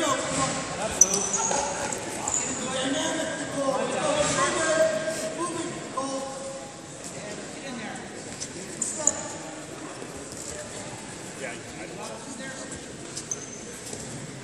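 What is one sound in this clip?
Shoes squeak on a wrestling mat.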